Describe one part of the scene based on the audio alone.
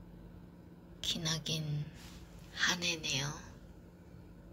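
A young woman speaks softly and close to a phone microphone.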